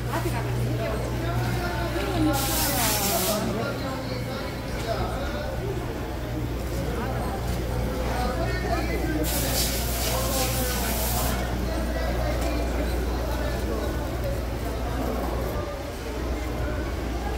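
A crowd of men and women chatters all around, close by and further off.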